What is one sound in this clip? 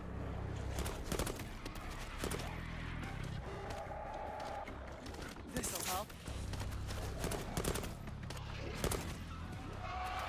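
Gunshots crack in rapid bursts close by.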